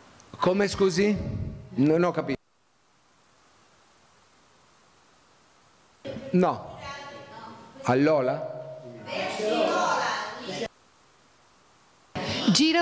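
A middle-aged man speaks with animation into a microphone in an echoing room.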